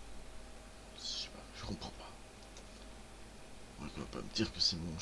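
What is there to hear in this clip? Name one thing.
A man speaks into a close microphone in short bursts.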